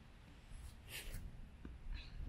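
A plastic bat swings and taps a ball.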